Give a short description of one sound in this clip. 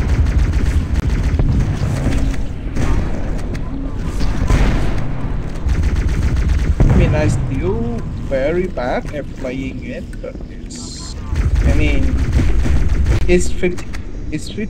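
Gunfire and plasma blasts crackle in a video game.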